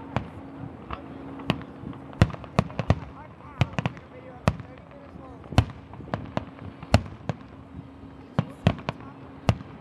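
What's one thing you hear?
Fireworks burst with sharp cracks and bangs in the distance, one after another.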